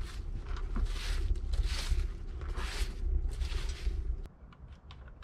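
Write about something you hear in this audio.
A fire steel scrapes rhythmically.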